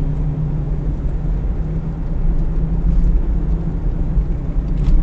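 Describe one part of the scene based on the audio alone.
Tyres rumble over a rough road surface.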